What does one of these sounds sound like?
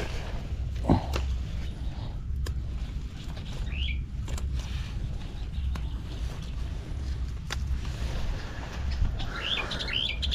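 Leaves rustle as a hand handles plants.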